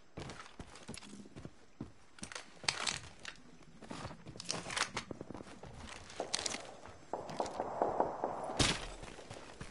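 Gunshots crack in short, rapid bursts.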